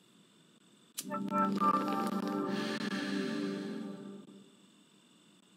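A computer plays a startup chime.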